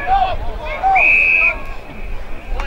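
A referee's whistle blows a short, shrill blast.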